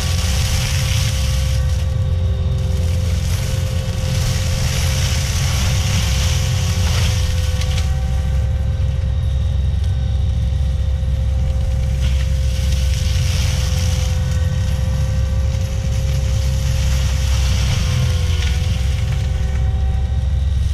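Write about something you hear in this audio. A forestry mulcher grinds through brush in rising and falling bursts.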